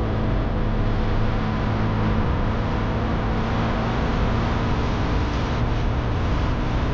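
A car drives along a road with a steady engine hum and tyre roar.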